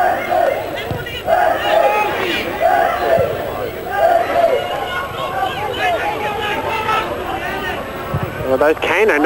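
A football thumps as it is kicked on a grass pitch.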